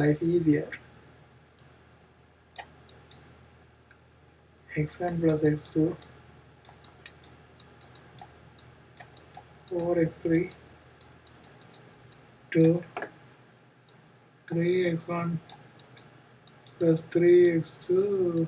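A stylus taps and scratches on a writing tablet.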